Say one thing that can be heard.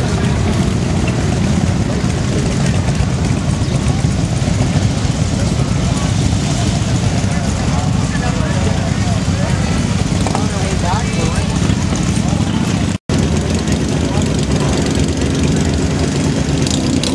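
Motorcycle engines rumble loudly and steadily close by.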